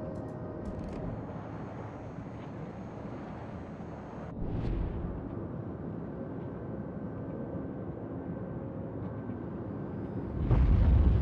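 Waves wash and churn steadily against a ship's hull.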